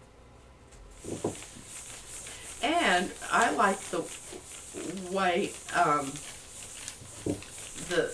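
A woman talks calmly through a microphone.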